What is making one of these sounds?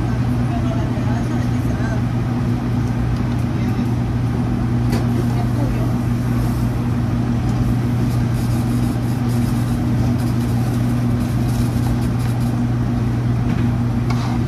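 Dishes and utensils clink now and then.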